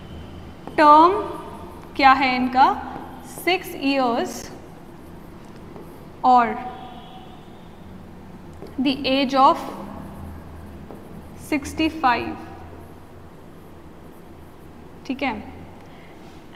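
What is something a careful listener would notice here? A young woman speaks calmly and clearly, as if teaching, close to a microphone.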